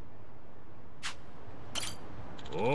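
A short game menu chime sounds as a menu closes.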